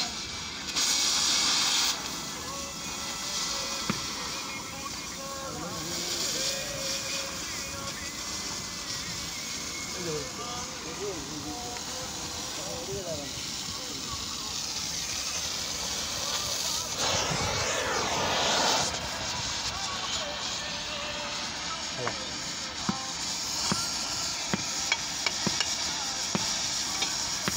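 Molten metal crackles and spatters.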